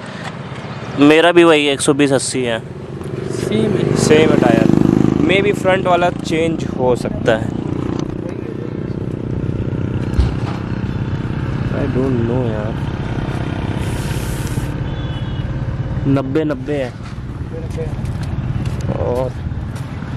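A motorcycle engine idles nearby with a low steady rumble.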